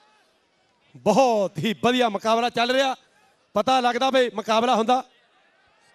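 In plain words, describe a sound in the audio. A man chants loudly and rhythmically.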